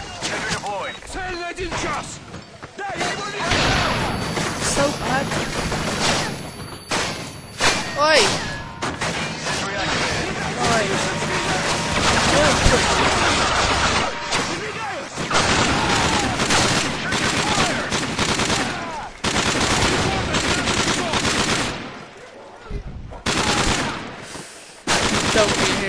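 Automatic rifle fire crackles from a video game battle.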